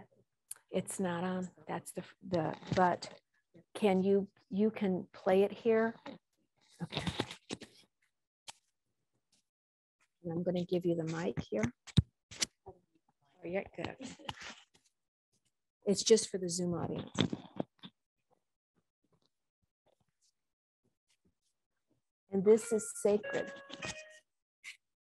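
A woman speaks calmly into a nearby microphone, with pauses.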